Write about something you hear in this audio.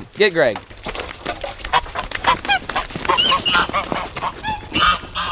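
Geese beat their wings in a scuffle.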